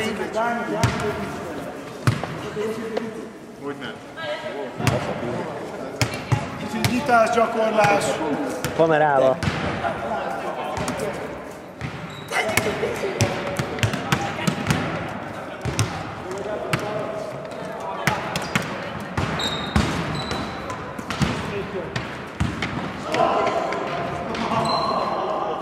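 A volleyball thuds against hands and bounces on a wooden floor in a large echoing hall.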